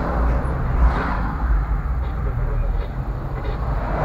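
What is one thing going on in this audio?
A heavy truck rumbles past close by.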